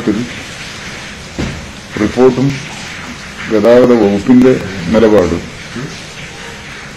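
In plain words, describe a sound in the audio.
An elderly man speaks calmly into a microphone, slightly muffled, in a pausing manner.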